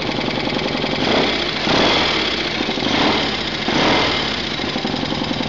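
A motorcycle engine revs up briefly several times.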